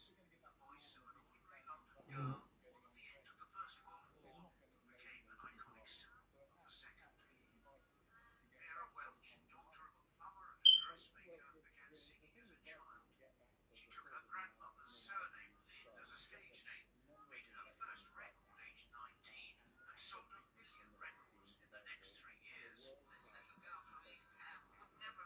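A middle-aged man speaks calmly over an online call, heard through a television's speaker.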